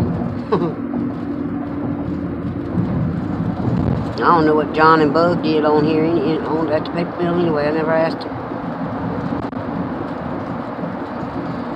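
A car engine and tyres rumble steadily on the road.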